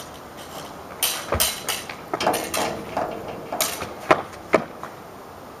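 Swords clash and clatter.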